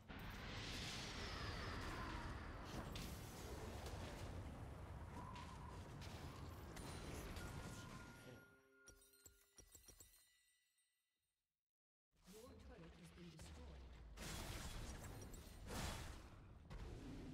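Video game combat effects clash and burst with magical whooshes.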